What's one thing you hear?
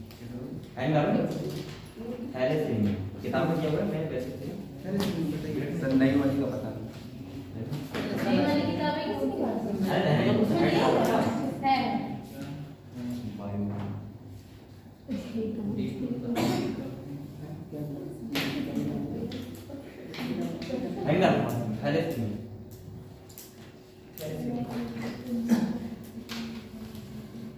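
A young man speaks calmly nearby in a room with a slight echo.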